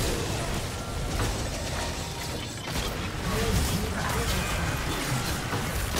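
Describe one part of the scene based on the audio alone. Game spell effects whoosh, crackle and clash in a busy fight.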